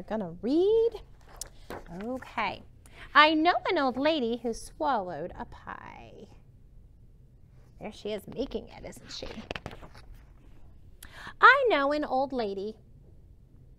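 A woman reads aloud with expression, close to the microphone.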